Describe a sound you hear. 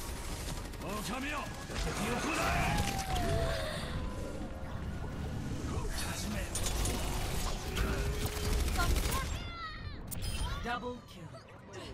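Explosions and energy blasts boom and crackle.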